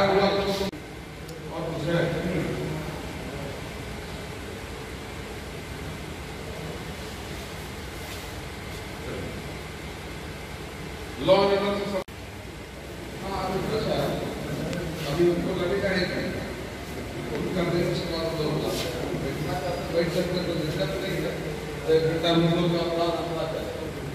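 A man speaks loudly to a group in an echoing room.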